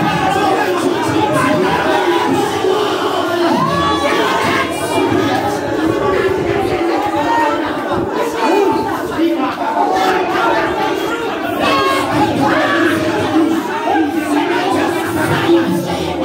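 Several women pray and call out together in a lively group.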